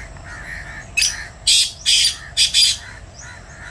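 A pheasant gives loud, harsh calls in short bursts.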